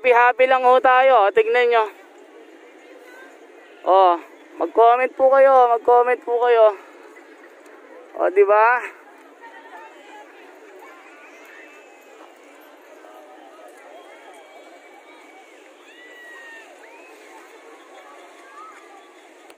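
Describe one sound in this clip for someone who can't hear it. A crowd of people chatters softly in the distance outdoors.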